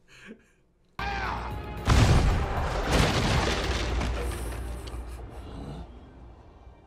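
Cannons fire with a heavy boom and a long rumble.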